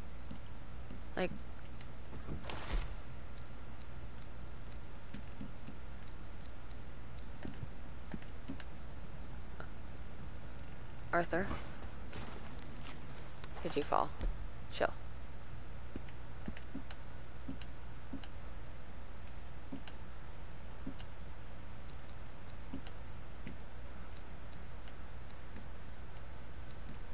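Soft game menu clicks tick as a selection wheel turns.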